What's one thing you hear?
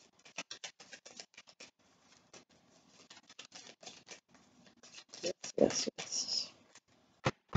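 A young woman shuffles a deck of cards with soft riffling clicks.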